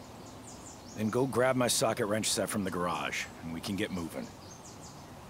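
A man speaks calmly and casually, close by.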